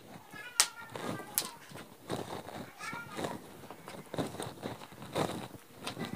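A cloth tape measure slides and rustles softly over fabric.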